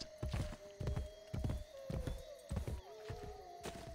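Horse hooves thud at a gallop on soft ground.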